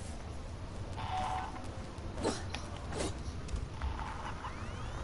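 A motion tracker beeps.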